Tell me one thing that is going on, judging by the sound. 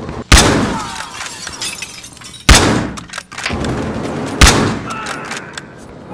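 A rifle bolt clacks as it is worked.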